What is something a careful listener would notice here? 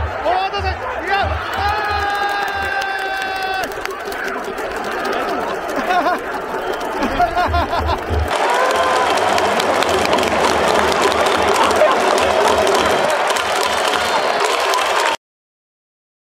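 A large stadium crowd cheers and claps.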